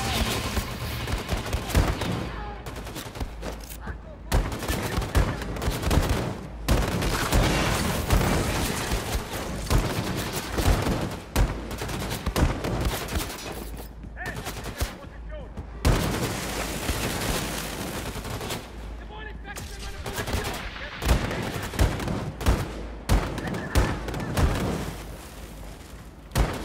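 Heavy gunfire blasts in rapid bursts.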